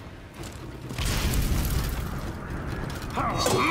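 A fire explosion roars with a deep whoosh.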